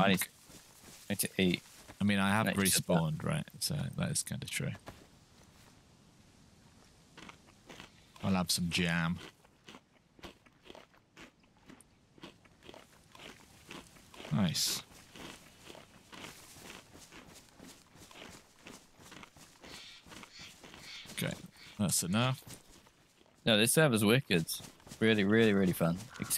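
Footsteps rustle through leafy undergrowth.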